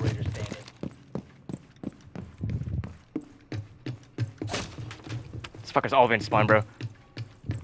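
Footsteps thud steadily on wooden stairs.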